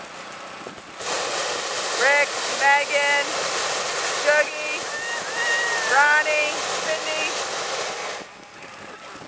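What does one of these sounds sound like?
A balloon's gas burner roars steadily.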